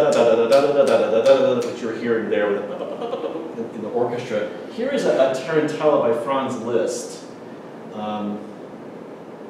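A middle-aged man speaks with animation to an audience.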